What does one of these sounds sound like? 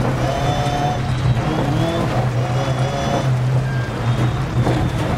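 Tyres crunch and rumble over loose gravel.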